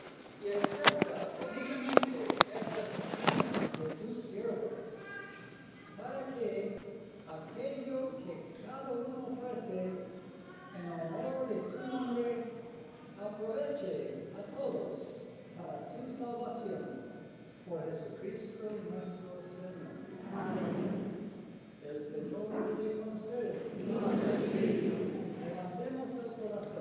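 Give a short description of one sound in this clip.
A man speaks calmly and steadily at a distance, echoing in a large hall.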